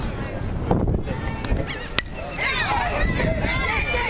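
A metal bat cracks against a baseball.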